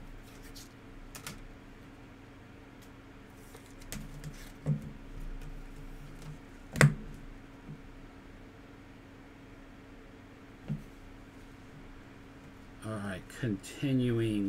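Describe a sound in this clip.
Trading cards rustle and click as they are shuffled by hand.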